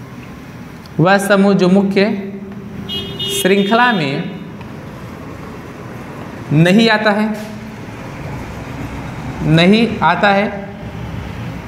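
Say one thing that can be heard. A man speaks calmly and clearly, explaining in short bursts.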